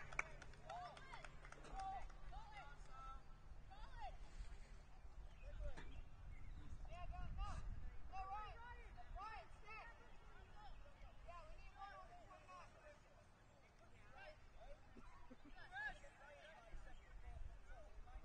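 Young players shout to each other from far off across an open field.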